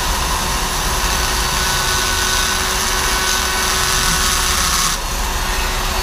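A small air-powered grinder whirs steadily at high pitch.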